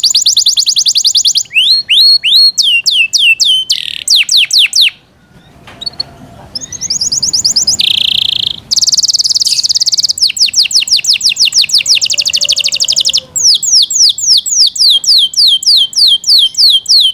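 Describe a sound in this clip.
A canary sings close by in loud, rapid trills and chirps, with a brief pause.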